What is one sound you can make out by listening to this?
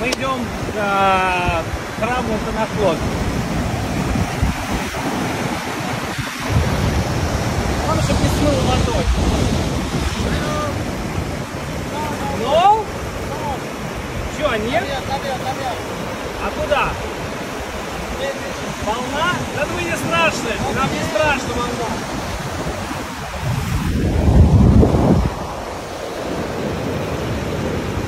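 Waves splash and wash over rocks.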